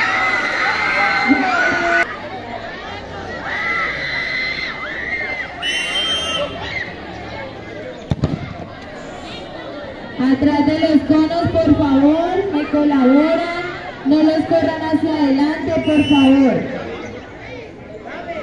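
A crowd of children and teenagers shouts and cheers outdoors.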